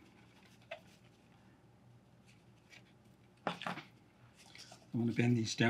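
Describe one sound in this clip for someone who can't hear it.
Cardboard pieces click and rustle in a man's hands.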